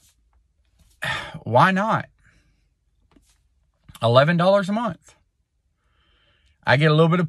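A middle-aged man speaks calmly and close to the microphone, in short bursts with pauses.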